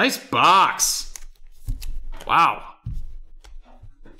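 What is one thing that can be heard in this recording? Foil wrappers crinkle in hands.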